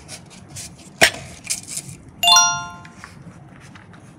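A plastic box clicks as it is handled.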